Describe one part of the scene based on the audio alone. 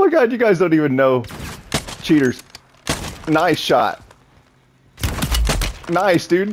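A rifle fires a loud, sharp shot.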